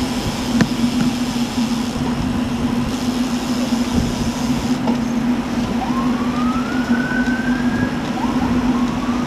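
Bicycle tyres hum steadily on the road.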